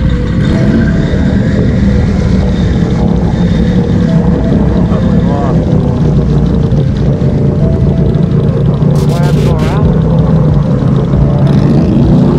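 Tyres churn and splash through muddy water.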